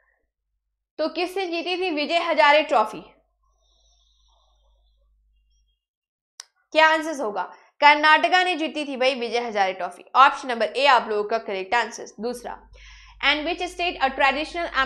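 A young woman speaks calmly into a microphone, close by.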